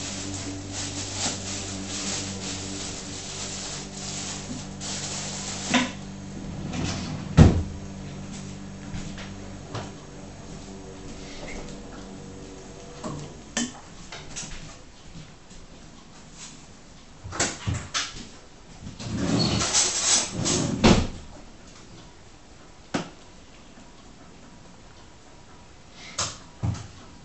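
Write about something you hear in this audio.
A cat eats noisily, crunching and lapping up close.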